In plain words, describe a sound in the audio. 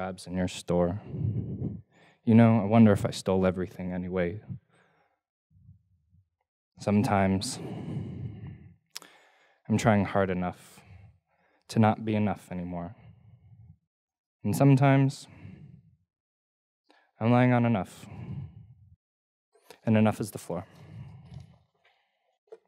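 A young man reads aloud slowly into a microphone, with long pauses.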